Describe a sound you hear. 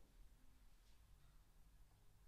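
A trombone plays a soft, low, held note.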